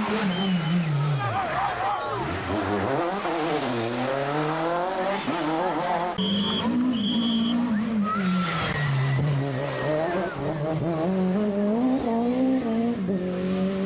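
A rally car engine roars and revs hard, rising and falling in pitch as it passes.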